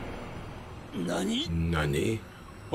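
A man with a deep voice speaks menacingly, close by.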